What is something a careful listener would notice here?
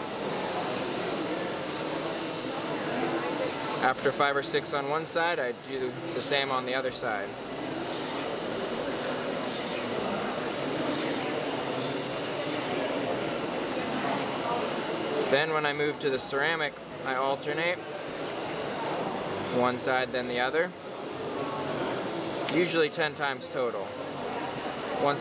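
A crowd murmurs in the background of a busy hall.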